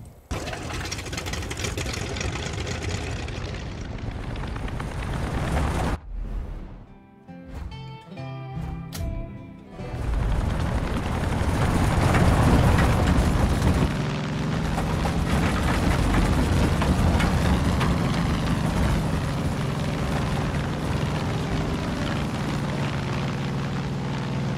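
A small propeller plane's engine roars steadily, rising as it takes off.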